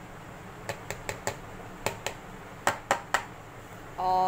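A plastic scoop taps and scrapes against a plastic bowl.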